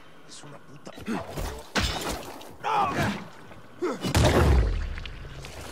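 A body is struck hard with a blunt weapon, with heavy wet thuds.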